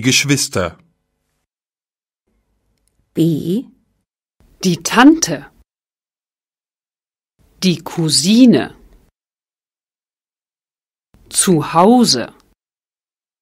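A woman speaks clearly in short phrases, heard through a microphone.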